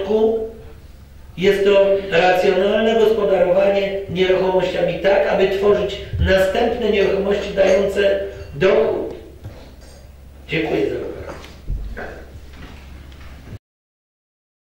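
A middle-aged man speaks calmly into a microphone in a room that echoes a little.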